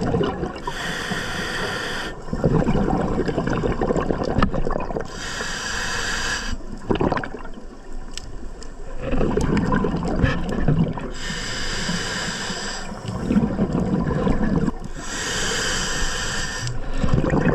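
A scuba regulator hisses in rhythmic breaths close by.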